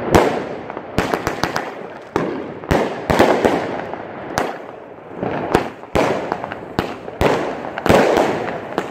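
Fireworks fizz and hiss as sparks scatter.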